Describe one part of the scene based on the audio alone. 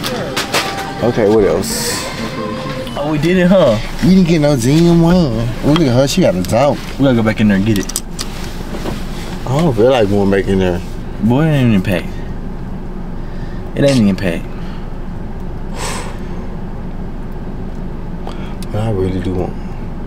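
A young man raps in a sung, rhythmic voice up close.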